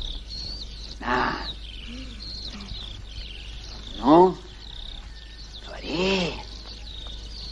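An elderly man calls out loudly in short bursts, close by.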